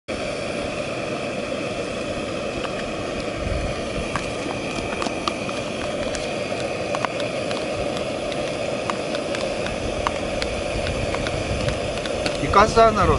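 Liquid simmers and bubbles gently in a pot.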